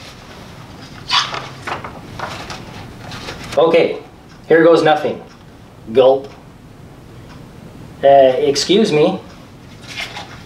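Book pages turn and rustle.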